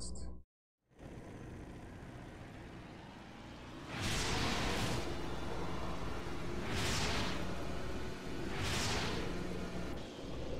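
A quad bike engine drones and revs in surges.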